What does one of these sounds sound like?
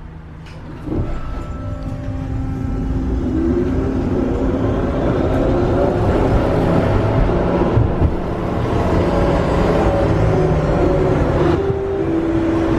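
A tram's motor whines, rising in pitch as it speeds up.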